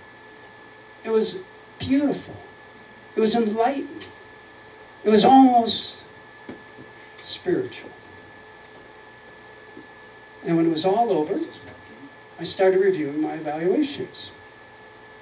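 An elderly man speaks with animation into a microphone, heard over a loudspeaker, in short bursts with pauses.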